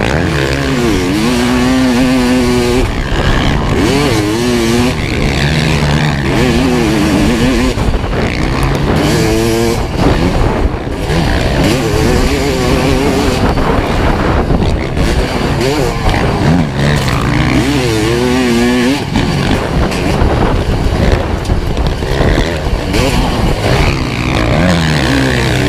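A dirt bike engine roars close by, revving up and down as gears shift.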